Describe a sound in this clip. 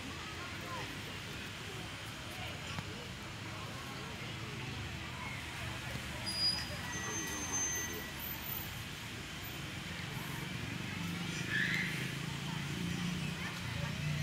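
A crowd murmurs softly in the distance outdoors.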